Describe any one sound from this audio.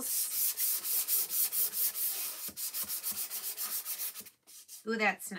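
A sanding sponge rubs back and forth over a board in quick, even strokes.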